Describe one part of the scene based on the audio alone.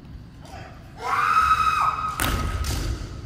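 A young man lets out a long, piercing shout in a large echoing hall.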